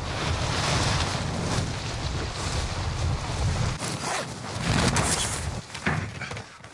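Wind rushes loudly during a fast fall through the air.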